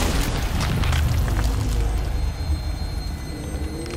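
A gloved fist lands a hard punch on a body.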